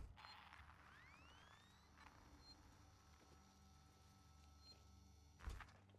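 A motion tracker beeps at a steady pace.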